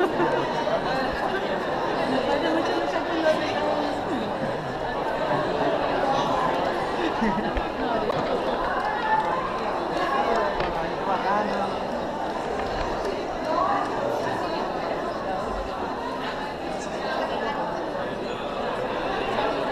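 A crowd of young people chatters and murmurs nearby in a large echoing hall.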